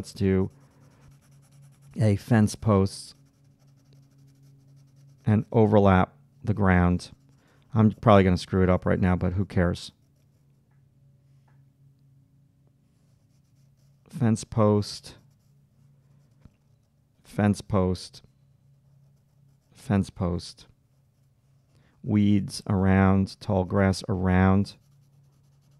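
A middle-aged man talks calmly into a close microphone, in short phrases with pauses.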